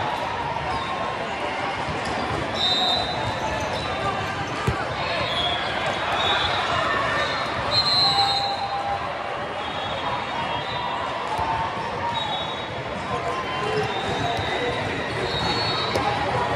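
A crowd chatters steadily in a large echoing hall.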